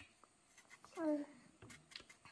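A baby makes a short babbling sound.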